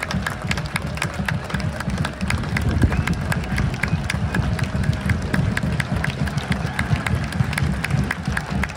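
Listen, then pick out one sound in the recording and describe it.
Many fans clap their hands in a quick, steady rhythm.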